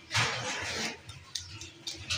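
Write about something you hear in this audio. Grated cheese patters softly onto a tray of pasta.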